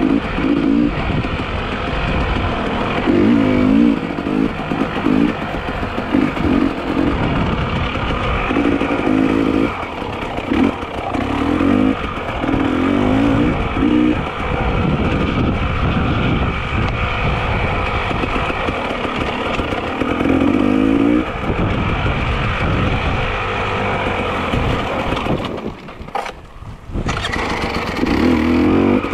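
Wind rumbles hard against a microphone outdoors.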